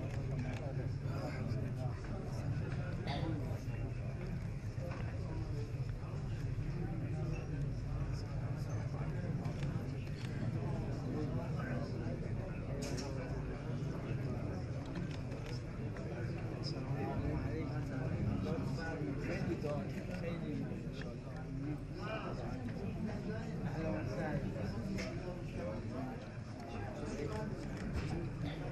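A crowd of men murmur and talk in a busy room.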